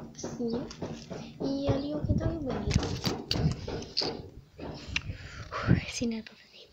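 A young girl talks close to a phone microphone with animation.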